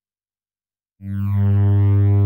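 A low, buzzy synthesizer tone starts suddenly and swells louder.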